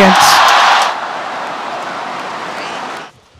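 A crowd applauds steadily.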